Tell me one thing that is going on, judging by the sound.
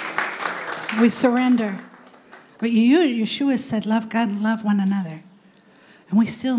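A woman sings through a microphone, amplified in the room.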